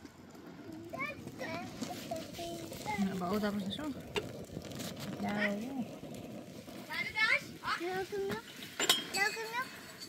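A young child talks in a high voice nearby.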